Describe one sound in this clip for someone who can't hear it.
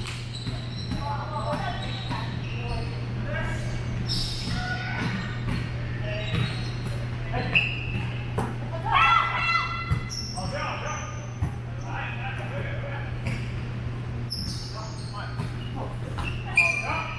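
Young women and men call out and chatter across a large echoing gym.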